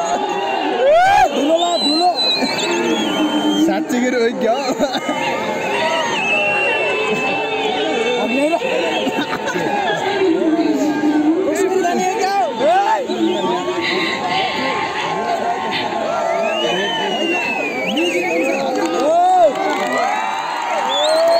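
A large crowd chatters and calls out loudly outdoors.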